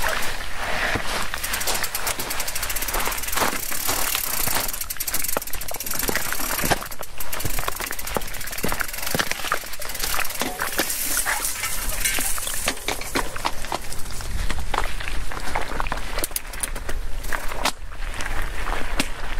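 A bicycle's frame and chain clatter over bumps.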